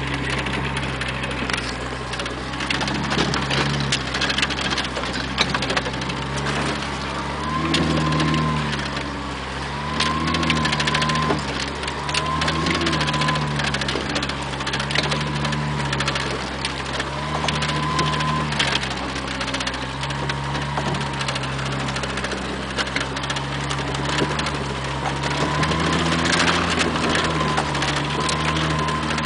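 A vehicle's body rattles and knocks over bumps.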